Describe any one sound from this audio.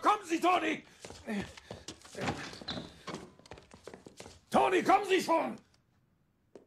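A middle-aged man shouts with agitation close by.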